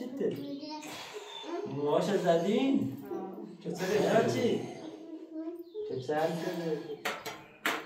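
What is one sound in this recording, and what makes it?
A young man talks playfully to a baby nearby.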